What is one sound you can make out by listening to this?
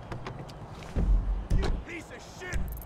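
A car door thumps shut.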